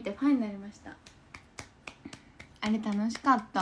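A young woman claps her hands softly.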